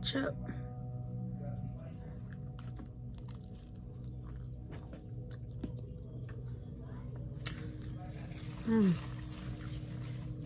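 A young woman chews food loudly close to a microphone.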